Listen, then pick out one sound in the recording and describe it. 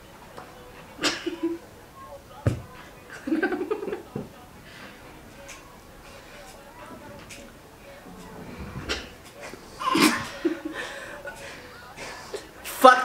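Young men and a young woman laugh nearby.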